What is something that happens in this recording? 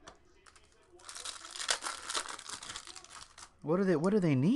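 A foil wrapper crinkles and rustles.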